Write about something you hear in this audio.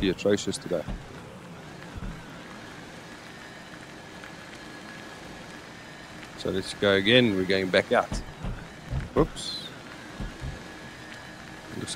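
A small vehicle's motor hums steadily as it drives over rough ground.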